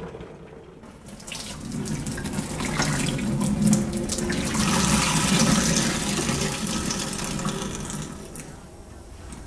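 Water runs from a tap and splashes into a metal sink.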